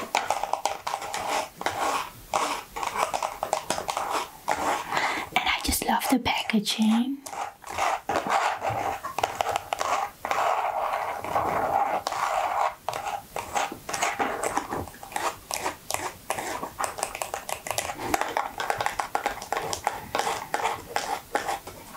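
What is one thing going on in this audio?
Long fingernails tap and scratch quickly on cardboard boxes, close up.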